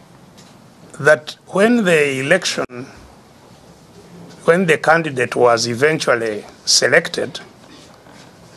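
An elderly man speaks with emphasis, heard through an online call.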